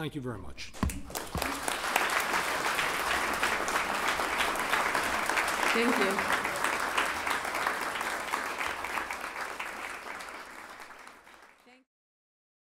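An audience applauds and slowly fades out.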